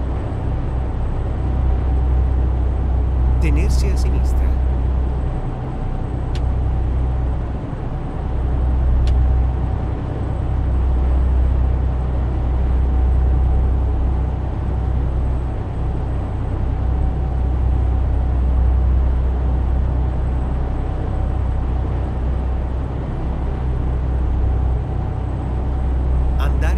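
A truck engine drones steadily with a low rumble.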